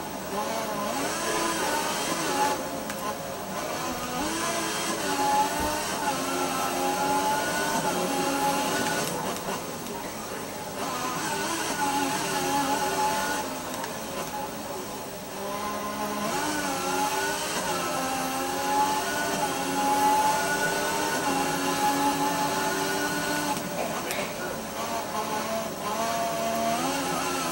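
A racing car engine whines loudly, rising and dropping in pitch as it speeds up and shifts gears.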